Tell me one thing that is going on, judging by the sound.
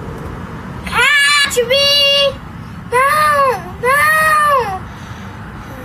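A young boy shouts loudly in long drawn-out cries close by.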